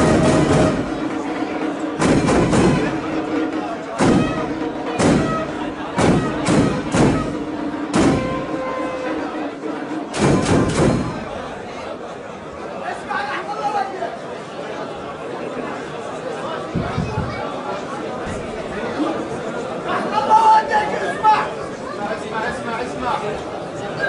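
A child recites loudly through a microphone in an echoing hall.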